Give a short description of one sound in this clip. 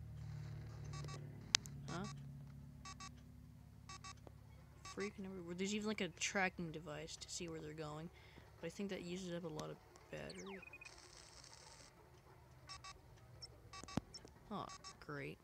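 Short electronic beeps sound in quick bursts.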